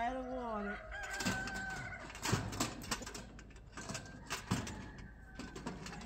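A metal cage rattles and clanks.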